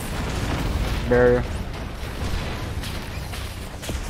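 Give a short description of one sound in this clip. Heavy explosions boom with a deep rumble.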